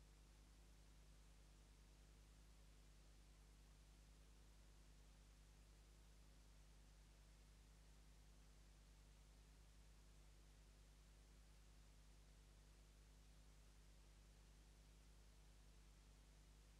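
A motorcycle engine thrums steadily at a constant pace.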